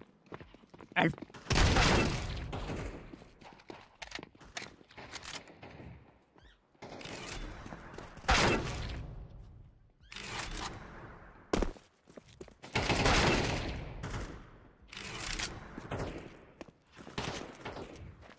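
Gunshots fire in short, sharp bursts.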